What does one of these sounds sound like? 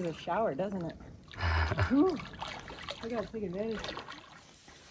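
A man cries out in wavering, breathless yelps from the cold water.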